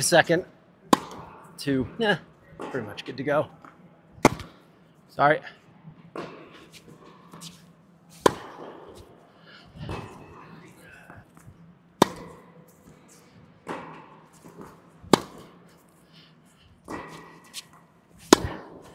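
A tennis ball is struck sharply by a racket, again and again, echoing in a large hall.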